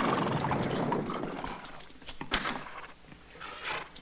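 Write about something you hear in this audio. Carriage wheels rattle and creak.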